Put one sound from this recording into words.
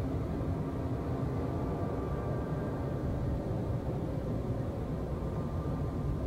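A hovering bike's engine hums and rumbles steadily.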